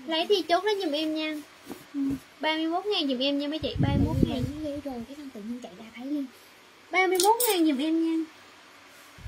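A young woman speaks up close with animation.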